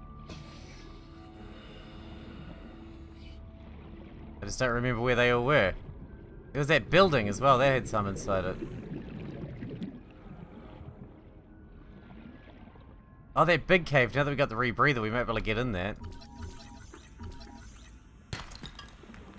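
Water murmurs and swirls softly all around underwater.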